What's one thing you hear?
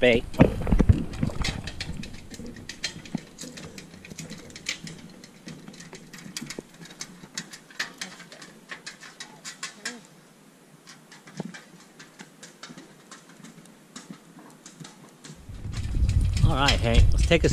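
Footsteps thud on a wooden boardwalk.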